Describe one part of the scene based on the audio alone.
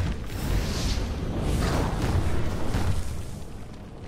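Magic blasts burst and whoosh.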